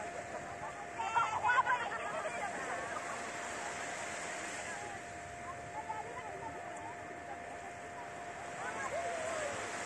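Small waves wash gently onto the shore.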